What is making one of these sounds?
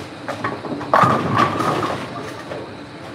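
Bowling pins clatter in the distance.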